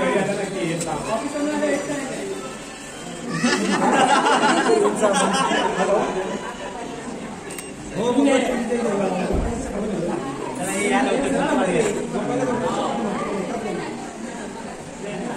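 Several men and women talk and chatter nearby.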